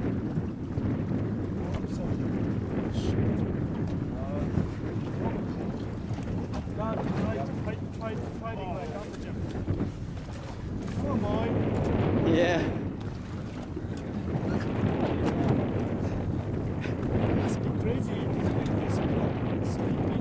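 Waves slap against a boat's hull.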